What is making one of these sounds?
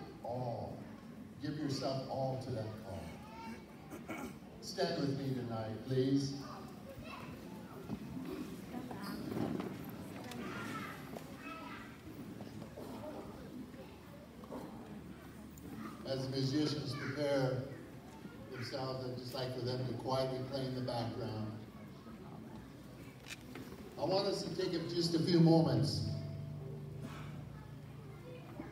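An elderly man speaks calmly through a loudspeaker.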